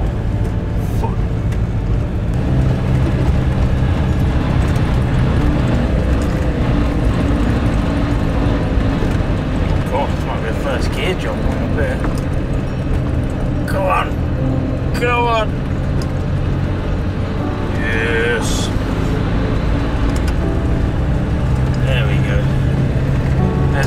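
Tyres crunch and rumble over a rough dirt track.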